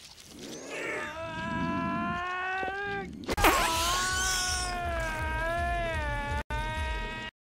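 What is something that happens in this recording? A young man screams in pain, close by.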